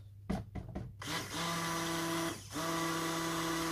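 A hand blender whirs steadily in liquid.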